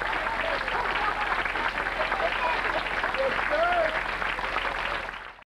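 A crowd in the audience cheers and whoops.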